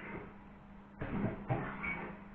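An electric guitar plays notes through an amplifier.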